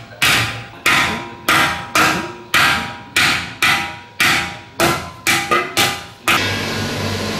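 A hammer strikes metal in regular, ringing blows.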